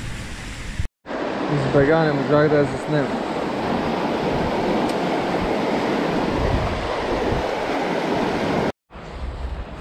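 Water rushes loudly over a weir.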